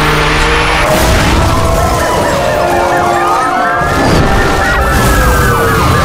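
A car crashes hard with crunching metal.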